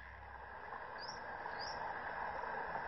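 A dolphin whistles underwater.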